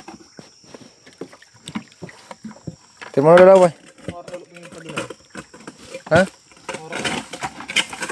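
Water splashes softly in a small tub.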